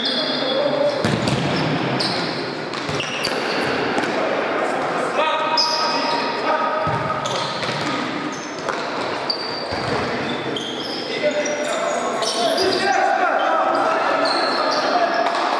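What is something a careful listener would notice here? A ball thumps as players kick it.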